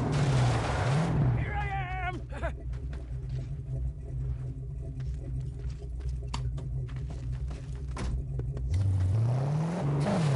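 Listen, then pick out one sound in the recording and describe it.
A V8 muscle car engine idles with a low rumble.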